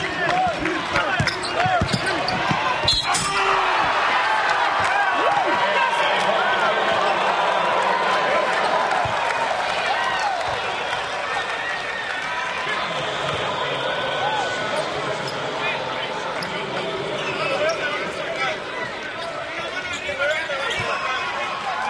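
Sneakers squeak on a hardwood court.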